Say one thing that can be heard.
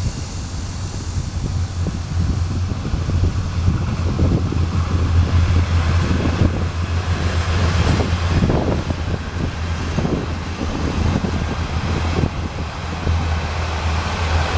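A train rumbles past in the distance, its wheels clattering on the rails.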